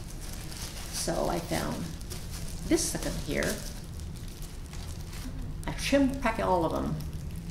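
An elderly woman speaks calmly and clearly, close to a microphone.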